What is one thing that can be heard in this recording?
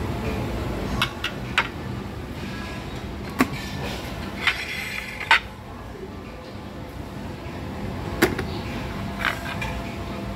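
Metal tongs clink against a ceramic plate.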